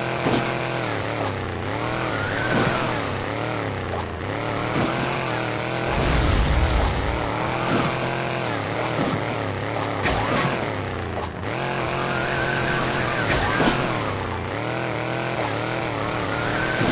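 A small motorbike engine revs up and down constantly.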